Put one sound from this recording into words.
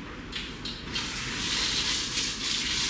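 Water sprays from a shower head.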